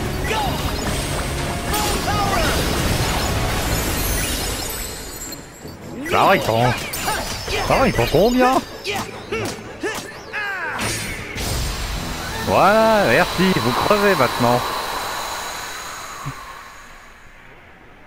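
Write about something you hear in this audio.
Magic blasts, swooshes and hits burst in quick succession during a fight.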